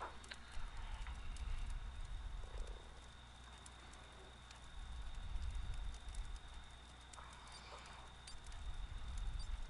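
A man talks quietly into a microphone.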